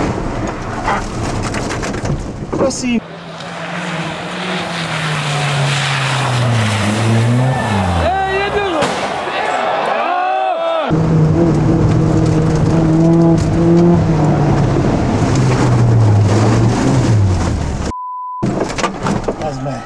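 Tyres hiss and crunch over a snowy road.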